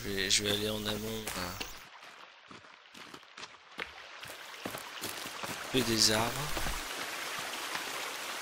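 Footsteps swish and crunch through grass.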